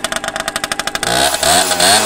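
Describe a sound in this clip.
A small motorcycle engine revs up briefly.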